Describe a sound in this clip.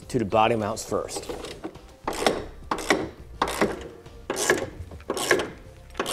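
A ratchet wrench clicks as it turns.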